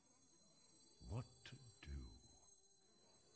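A game plays a whooshing card sound effect.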